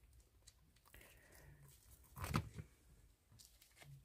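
A soft silicone mould peels away from a hard resin piece.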